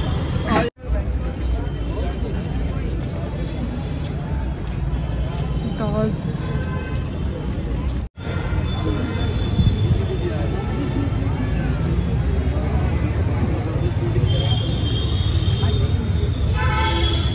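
A busy crowd murmurs and chatters all around outdoors.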